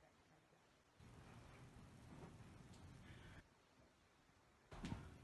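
Clothing rustles as a person shifts and gets up from a floor.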